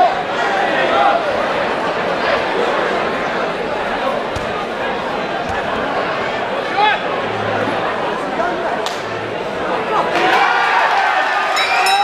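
A crowd chatters and murmurs throughout a large echoing hall.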